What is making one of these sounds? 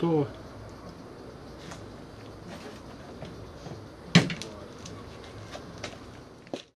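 A plastic panel knocks and scrapes.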